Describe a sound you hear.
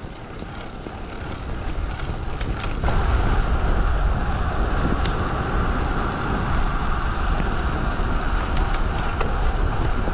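Bicycle tyres hum on smooth asphalt.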